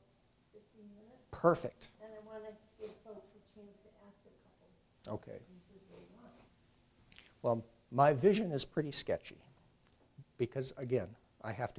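A man speaks calmly in a quiet room.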